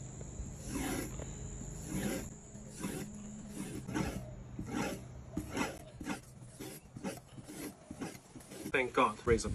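A knife blade scrapes in strokes across a sharpening strop.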